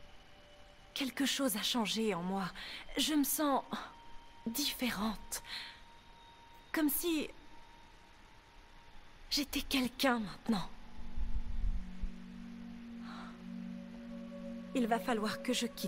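A young woman speaks softly and emotionally, close by.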